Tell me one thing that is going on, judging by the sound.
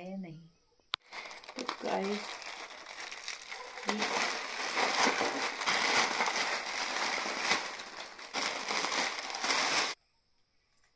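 A plastic packet crinkles and rustles as it is torn open and handled.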